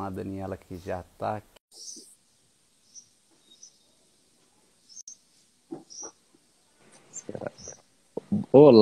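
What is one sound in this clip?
A man speaks calmly into a phone microphone, close up.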